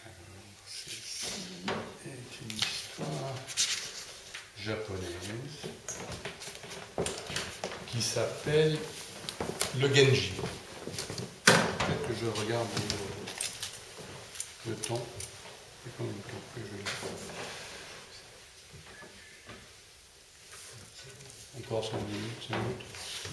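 An elderly man speaks calmly and clearly.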